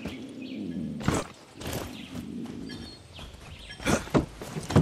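Hands grab and scrape against wooden boards in quick bursts.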